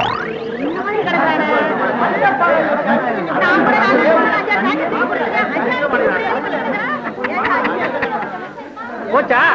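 A crowd of men and women wails and shouts all at once.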